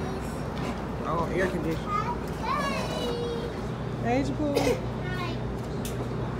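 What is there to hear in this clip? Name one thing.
A small child babbles.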